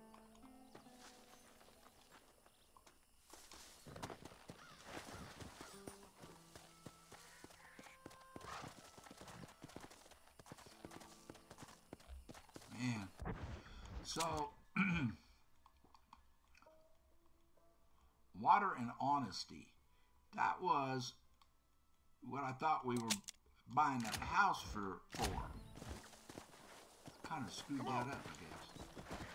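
A horse's hooves thud on dry ground.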